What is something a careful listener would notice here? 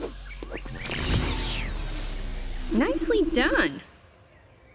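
A loud rushing whoosh sweeps upward as a figure is launched into the air.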